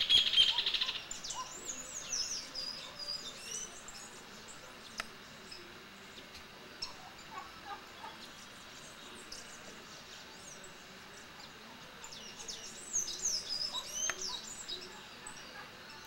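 Birds chirp now and then in short bursts.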